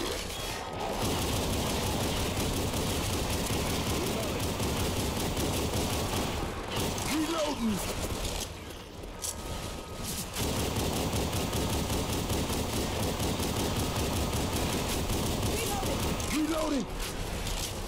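Pistols fire in rapid bursts of sharp shots.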